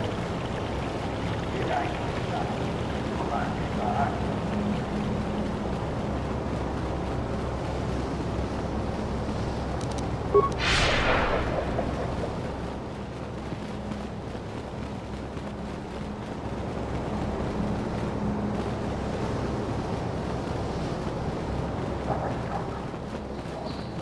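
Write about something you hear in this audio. Footsteps run quickly over hard ground.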